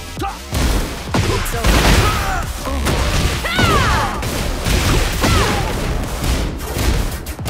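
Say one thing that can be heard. Punches and kicks land with heavy, rapid thuds.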